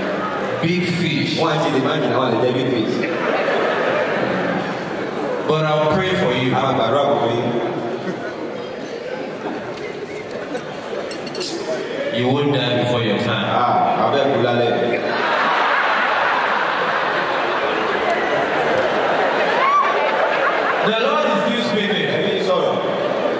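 A man talks with animation into a microphone through loudspeakers in a large echoing hall.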